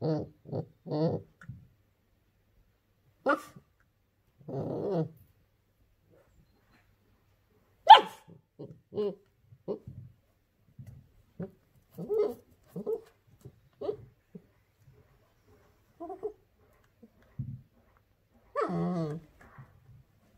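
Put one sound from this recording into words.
A puppy growls playfully in short bursts.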